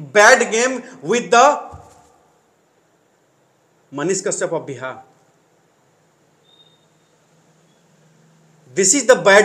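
A man speaks with animation close to a microphone, pausing between phrases.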